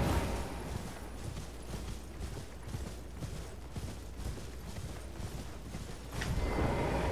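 A horse's hooves clop along at a steady trot.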